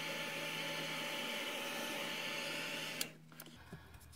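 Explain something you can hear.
A sheet of card slides across a table.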